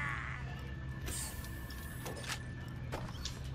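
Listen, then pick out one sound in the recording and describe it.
A metal crate lid slides open with a mechanical whir.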